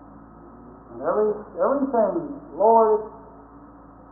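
A small dog howls in a few short, rising and falling bursts.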